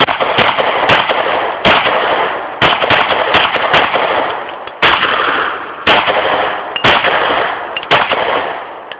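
A pistol fires rapid shots that boom and echo outdoors.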